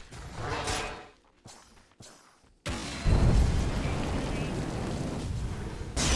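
Game spells burst and crackle with fiery whooshes.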